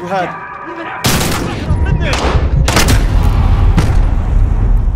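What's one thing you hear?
Gunshots bang loudly close by.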